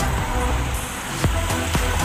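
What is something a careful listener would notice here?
A van drives past on a road.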